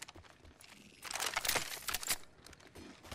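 A gun clicks and rattles as it is picked up.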